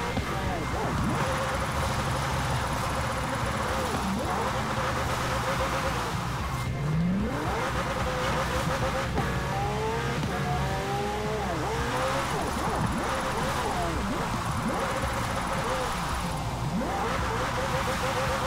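Tyres screech as a car drifts through corners.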